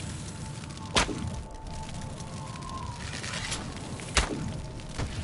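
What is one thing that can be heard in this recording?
A bow string twangs sharply as an arrow is shot.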